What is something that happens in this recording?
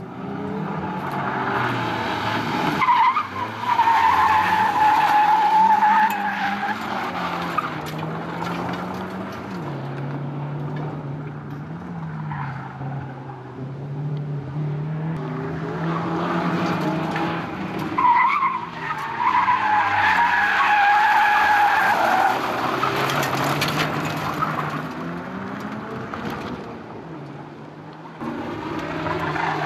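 A rally car engine revs hard and roars through gear changes.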